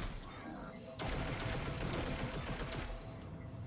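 A loud energy blast bursts with a crackle.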